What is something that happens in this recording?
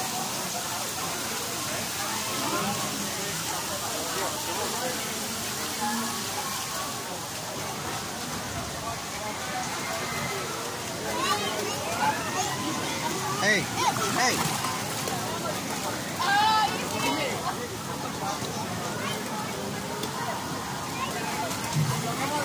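A low murmur of many voices carries on outdoors.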